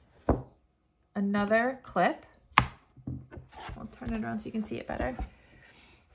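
A hard plastic case knocks and clatters as it is handled.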